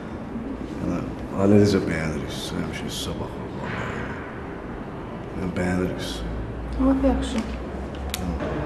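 A woman speaks quietly and calmly close by.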